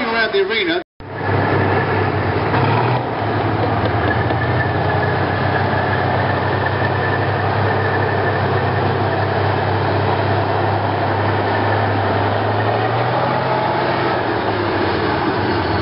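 A tank's engine rumbles loudly and steadily close by.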